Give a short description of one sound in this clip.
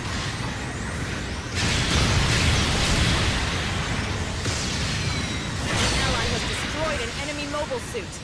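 Beam weapons fire in rapid, roaring blasts.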